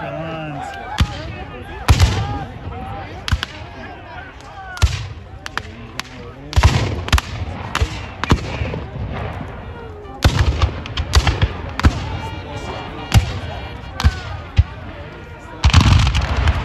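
Rifle volleys crack and boom across an open field, one after another.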